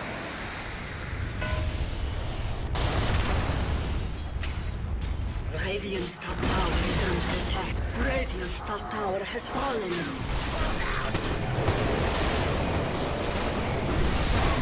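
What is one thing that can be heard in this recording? Magic blasts crackle and boom in a battle.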